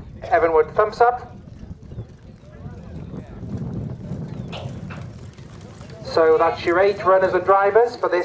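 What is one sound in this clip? Hooves thud softly on grass as a horse trots.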